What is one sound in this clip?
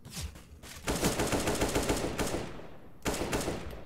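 An automatic rifle fires a rapid, loud burst of shots.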